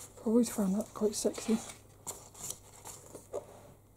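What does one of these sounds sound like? A page of a book rustles as it is turned.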